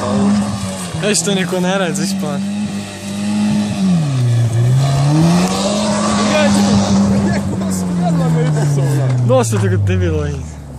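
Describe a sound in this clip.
Gravel sprays and patters as a car speeds past.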